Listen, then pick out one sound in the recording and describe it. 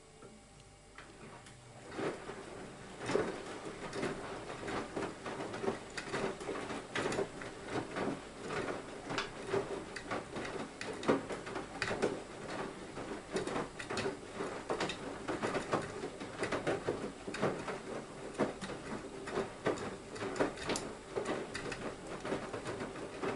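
Water sloshes and splashes inside a turning washing machine drum.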